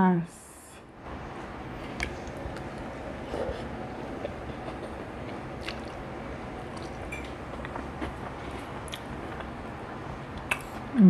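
A young woman chews food with soft, wet smacking sounds close to a microphone.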